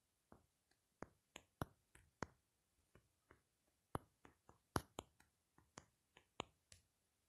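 A phone keyboard clicks softly as keys are tapped.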